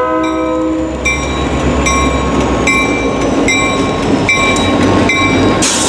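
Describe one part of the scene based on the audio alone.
Train wheels clack rhythmically over rail joints as the train passes close by.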